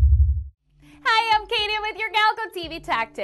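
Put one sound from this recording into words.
A young woman speaks cheerfully and clearly into a microphone.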